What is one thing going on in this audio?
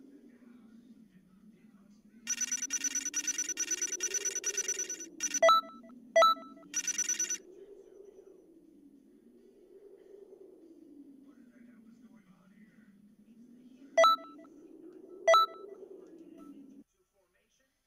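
A low, wavering game tune drones in the background.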